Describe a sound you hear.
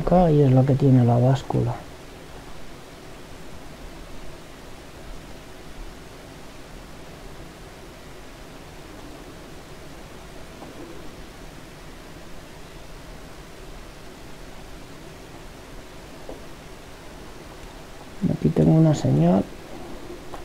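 A man talks briefly into a microphone, close by.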